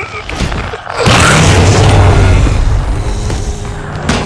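A loud explosion bursts and roars.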